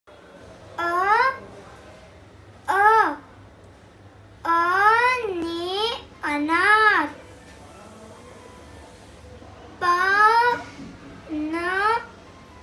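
A young girl reads aloud in short, sing-song bursts close by.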